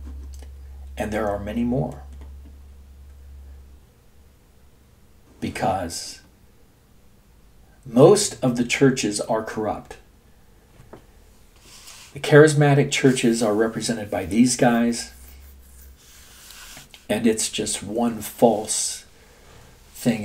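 An elderly man speaks calmly, in pauses, close to a microphone.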